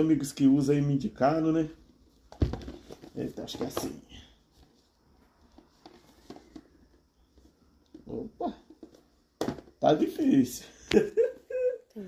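A cardboard box slides and taps as hands turn it over.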